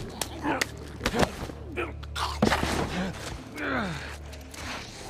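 A man grunts and strains in a struggle.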